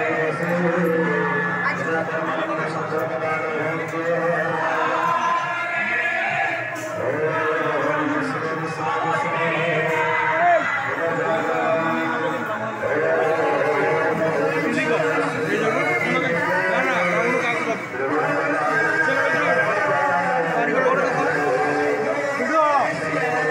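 A man sings into a microphone, heard loudly through loudspeakers.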